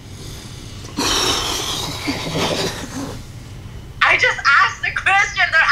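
Two young men laugh loudly in shock.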